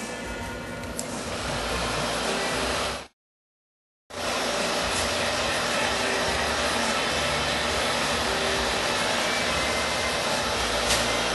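A hair dryer blows with a steady, loud rushing hum.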